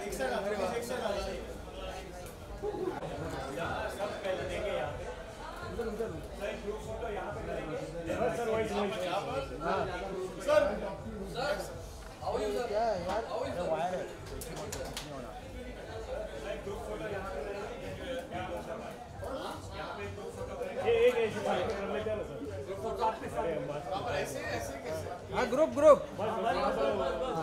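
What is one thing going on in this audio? Several men talk and call out at once nearby, in a crowd.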